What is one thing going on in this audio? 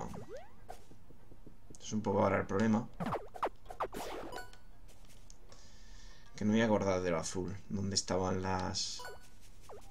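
Short video game sound effects blip and swish as a small figure attacks.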